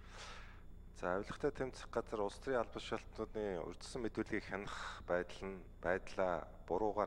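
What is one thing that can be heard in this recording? A third man speaks steadily into a microphone.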